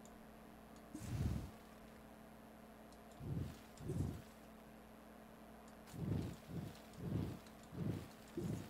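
A low rumbling whoosh of digging comes in short repeated bursts.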